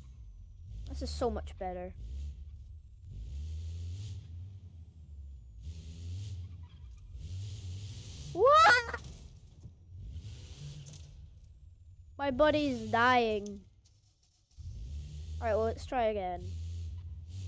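Kart tyres screech while skidding.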